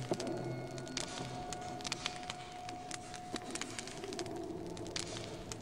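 Footsteps tap on a train floor.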